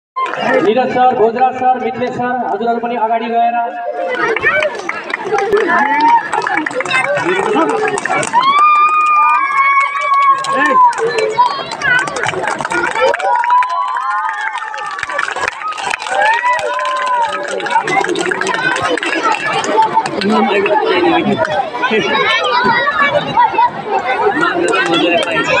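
A crowd of young children shouts and cheers loudly outdoors.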